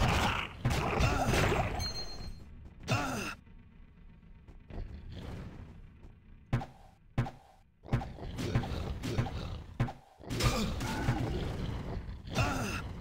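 Monsters screech and die in combat.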